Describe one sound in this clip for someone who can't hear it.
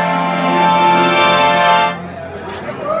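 An accordion plays a loud sustained chord, then stops.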